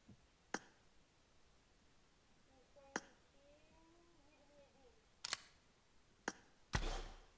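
Short clicks sound as menu buttons are tapped.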